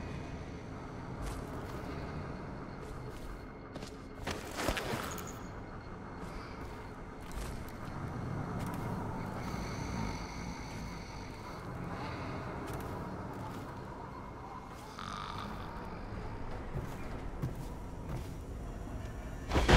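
Soft footsteps creep across creaking wooden boards.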